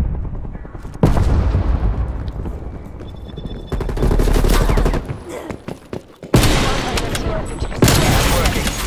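A rifle fires loud shots that echo and fade away.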